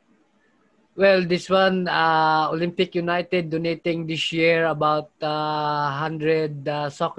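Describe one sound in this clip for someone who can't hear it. A woman speaks steadily through an online call.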